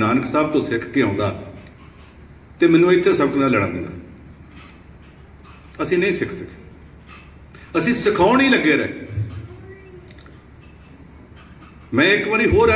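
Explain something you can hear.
An elderly man speaks slowly and deliberately into a microphone, in bursts with pauses, his voice echoing in a large hall.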